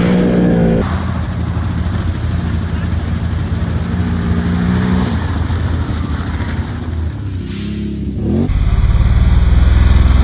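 An all-terrain vehicle engine rumbles as it drives through mud.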